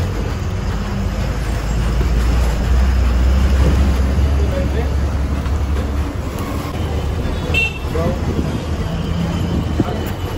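A bus engine rumbles steadily from inside as the bus drives along.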